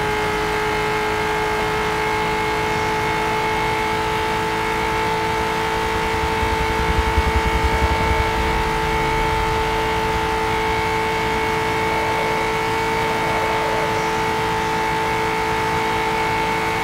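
A racing car engine drones steadily at high speed.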